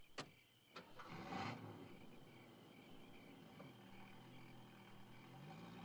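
A car engine starts and idles.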